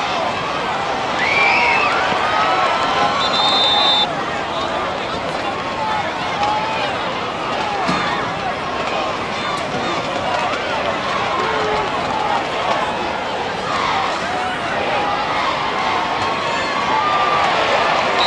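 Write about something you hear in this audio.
Football players collide with thuds of pads.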